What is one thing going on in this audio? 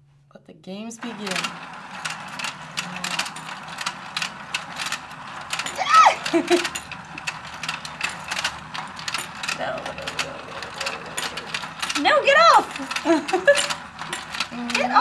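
A toy fishing game whirs and clicks steadily as it turns.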